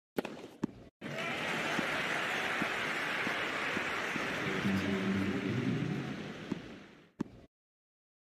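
A crowd applauds loudly and then fades away.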